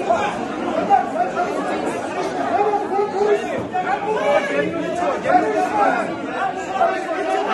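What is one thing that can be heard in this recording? A dense crowd of men and women talks and shouts over one another indoors.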